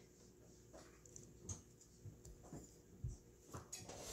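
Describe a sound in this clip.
A glass knocks lightly on a wooden table as it is picked up.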